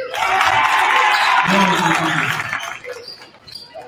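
A crowd cheers loudly in a large echoing gym, then quiets down.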